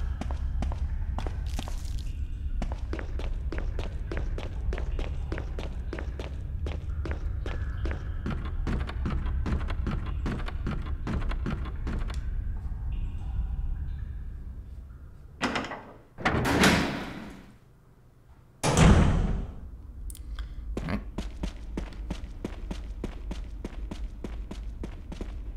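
Footsteps tap steadily on hard stone, echoing softly.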